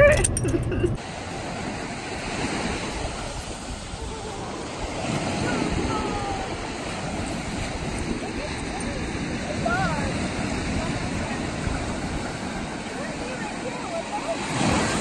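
Waves break and wash onto the shore nearby.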